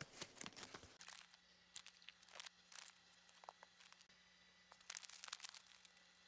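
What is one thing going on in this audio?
A small paper packet rustles and crinkles softly.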